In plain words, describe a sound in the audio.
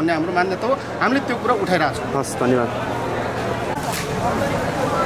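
A young man speaks firmly and close up.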